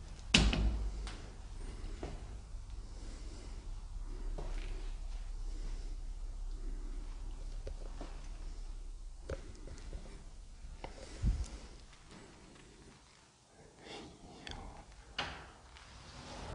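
Footsteps thud and creak on a wooden floor in a quiet, empty room.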